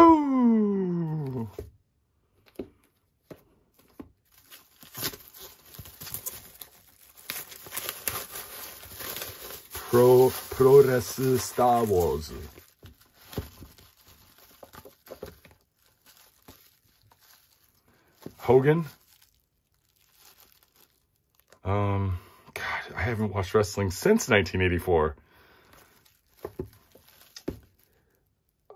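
Comic books rustle and tap softly as hands move and stack them.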